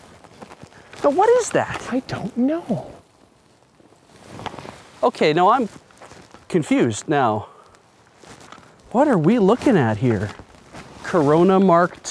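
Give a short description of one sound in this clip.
A man speaks calmly and clearly, close to a microphone.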